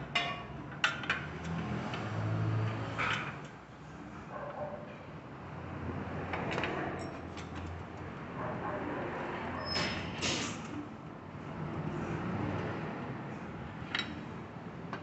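A metal wrench clicks and clinks against bolts.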